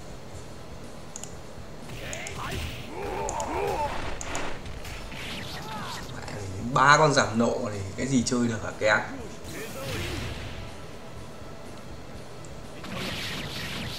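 Game fighters clash with punches and hit effects.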